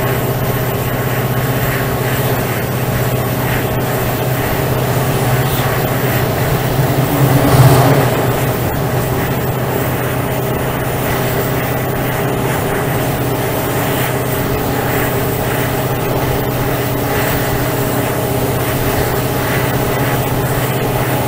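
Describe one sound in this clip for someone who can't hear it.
A diesel locomotive engine drones steadily close by.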